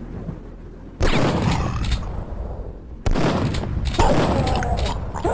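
A shotgun fires in loud, booming blasts.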